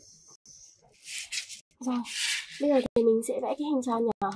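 Stiff paper rustles and slides under hands.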